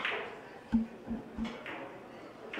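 Billiard balls click against each other and the cushions.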